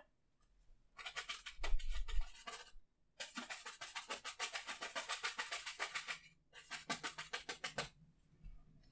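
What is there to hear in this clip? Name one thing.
A brush scrubs and taps against canvas.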